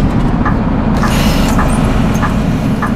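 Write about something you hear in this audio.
Bus doors open with a hiss of air.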